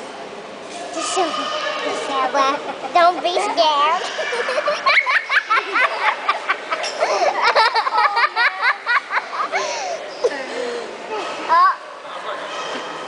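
Women laugh with amusement.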